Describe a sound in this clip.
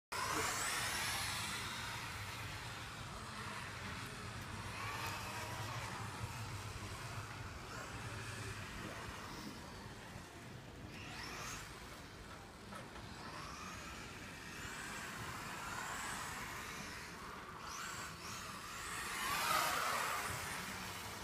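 A small electric race car whines loudly as it speeds around a track and fades as it goes away.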